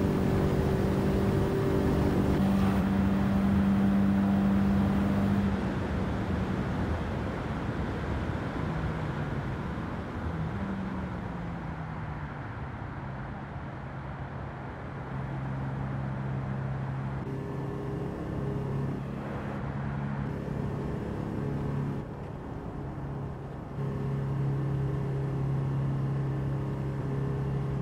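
A car engine drones steadily at high speed, then its pitch drops as the car slows.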